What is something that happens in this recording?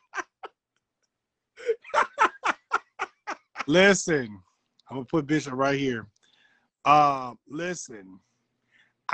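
A second man laughs and talks with animation over an online call.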